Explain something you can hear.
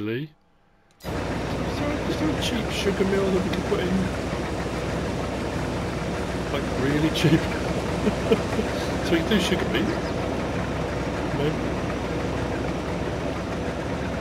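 A combine harvester's engine rumbles steadily.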